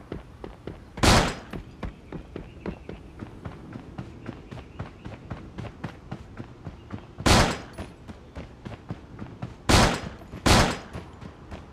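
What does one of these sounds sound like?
Pistol shots ring out loudly in a game.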